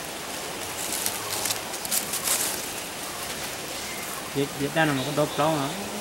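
Dry leaves and twigs crackle as hands handle them.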